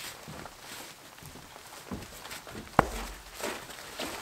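A wooden log is set down on a chopping block with a thud.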